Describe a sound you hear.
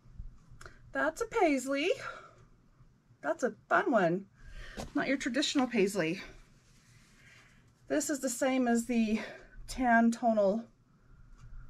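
A middle-aged woman speaks calmly and close by.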